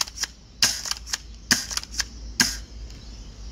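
An airsoft shotgun fires several sharp, snapping shots in quick succession.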